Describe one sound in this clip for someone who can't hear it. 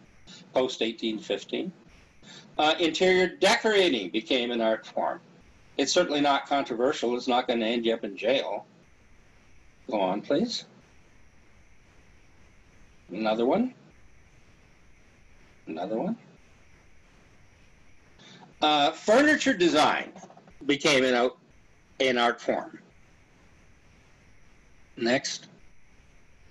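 An elderly man talks calmly over an online call, pausing now and then.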